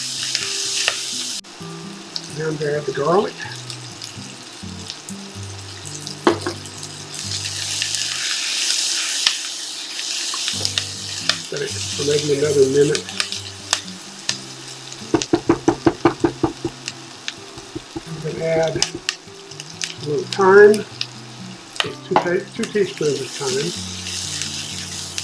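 A spatula scrapes and taps against a metal pan.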